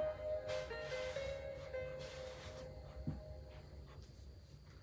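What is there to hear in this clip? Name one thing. A short fanfare of music plays from a television speaker.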